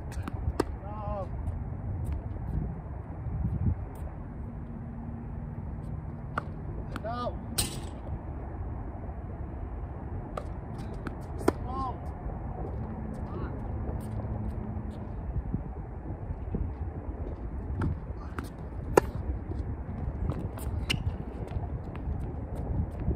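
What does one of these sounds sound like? Paddles strike a ball with sharp pops outdoors.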